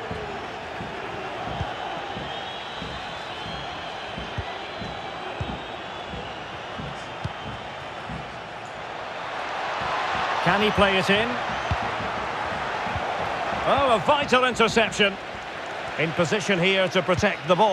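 A large crowd roars steadily in a big open stadium.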